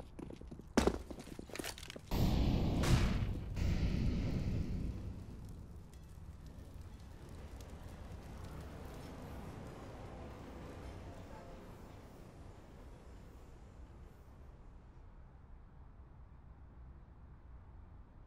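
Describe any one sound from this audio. Footsteps thud on a hard floor in an echoing corridor.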